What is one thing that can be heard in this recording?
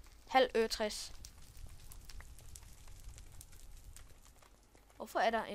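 Footsteps crunch softly on gritty ground.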